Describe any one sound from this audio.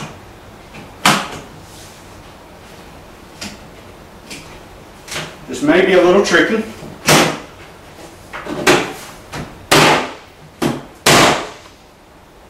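Wooden panels knock and thump together.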